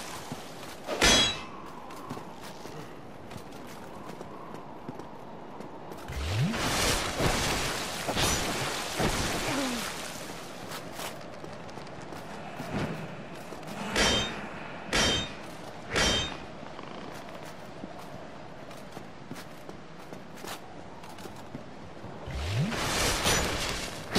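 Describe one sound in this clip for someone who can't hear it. Metal weapons clash and strike in sharp, ringing hits.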